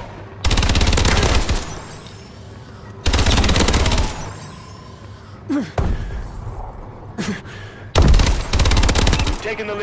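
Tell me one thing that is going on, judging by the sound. Automatic guns fire rapid bursts at close range.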